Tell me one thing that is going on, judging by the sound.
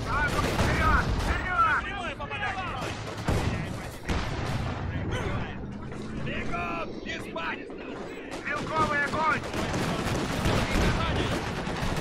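Explosions boom in a battle.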